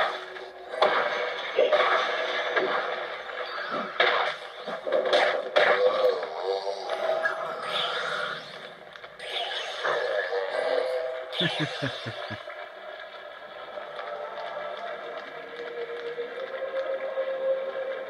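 Video game music plays steadily.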